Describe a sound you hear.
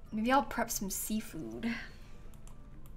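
A young woman speaks with animation into a close microphone.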